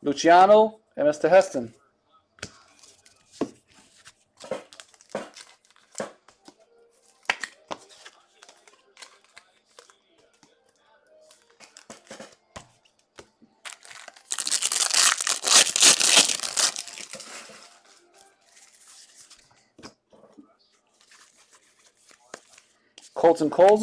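Cards tap and slide against each other in someone's hands.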